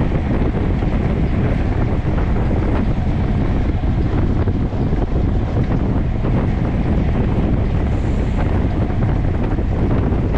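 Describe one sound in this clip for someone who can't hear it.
Strong wind rushes and buffets loudly past a fast-moving bicycle.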